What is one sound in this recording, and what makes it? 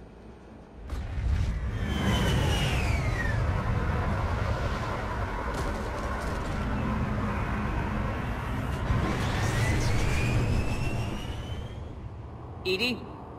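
A spacecraft engine roars loudly as it flies over, swelling and then fading.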